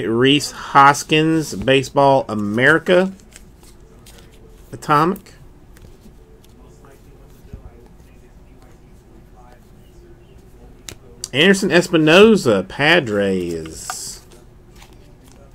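Trading cards rustle and flick softly between fingers.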